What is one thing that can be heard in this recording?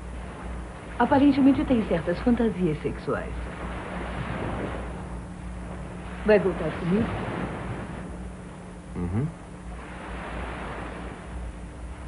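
Waves break and wash onto a shore.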